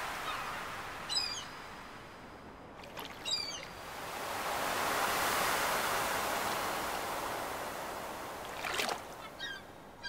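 A fishing float plops in water.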